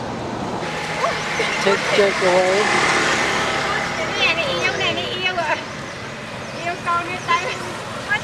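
A baby monkey squeaks and chirps close by.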